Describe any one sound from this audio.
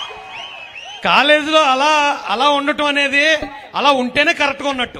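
A young man speaks loudly through a microphone and loudspeakers.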